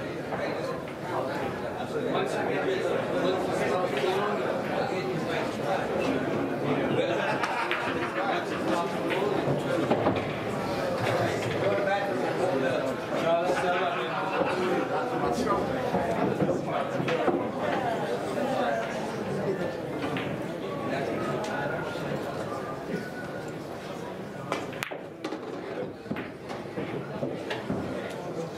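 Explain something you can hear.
A crowd of men and women murmur and chat nearby in a large room.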